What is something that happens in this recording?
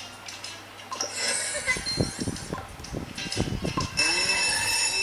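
Cheerful game music plays from a tablet's small speaker.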